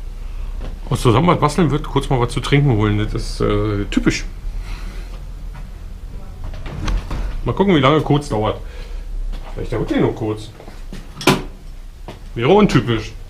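A man talks close by, casually.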